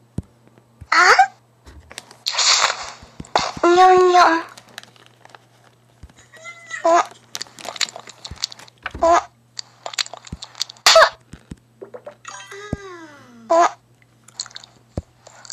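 A cartoon character chews and crunches food in quick bursts.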